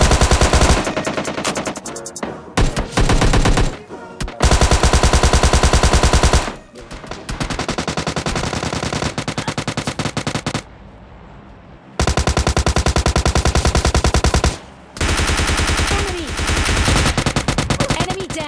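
Automatic gunfire rattles in fast, repeated bursts.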